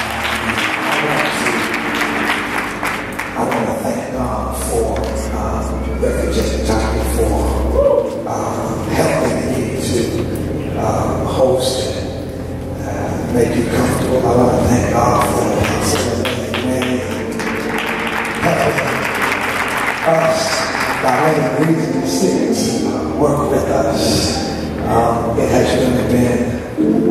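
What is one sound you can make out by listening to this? A man sings through a microphone and loudspeakers in a large echoing hall.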